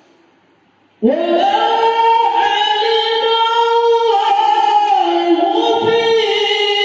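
A man chants loudly through a microphone, echoing in a large hall.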